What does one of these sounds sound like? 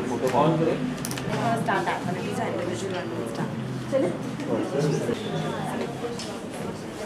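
A young woman speaks calmly and cheerfully into a nearby microphone.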